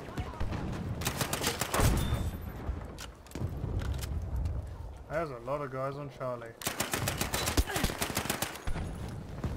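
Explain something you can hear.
An automatic gun fires rapid bursts.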